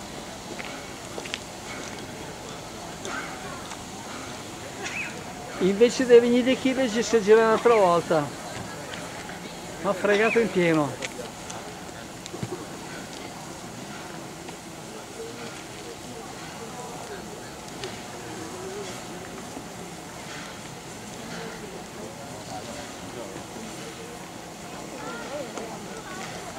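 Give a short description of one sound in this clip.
A crowd of people murmurs nearby outdoors.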